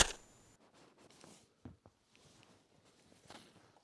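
A man shifts and rustles on a sofa.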